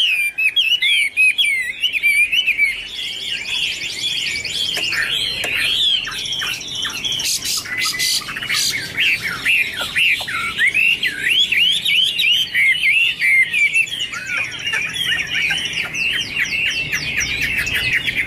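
A songbird sings a fast, loud, warbling song of varied whistles close by.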